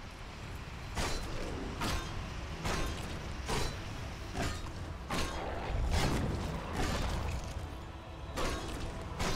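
Fiery spell blasts whoosh and burst again and again.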